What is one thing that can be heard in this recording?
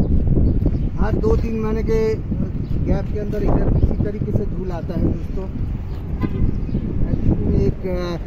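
A man speaks nearby over the wind.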